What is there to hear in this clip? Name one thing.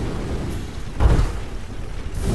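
A heavy mechanical walker lands with a loud thud.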